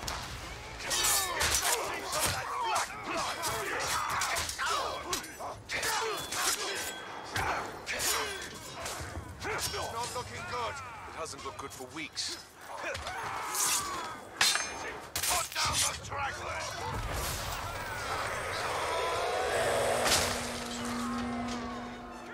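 Men grunt and cry out as they fight.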